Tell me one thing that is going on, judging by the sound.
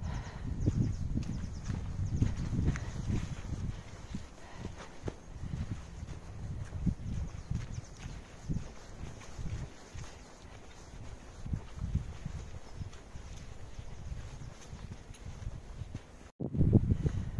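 Footsteps crunch and rustle on dry leaves along a path.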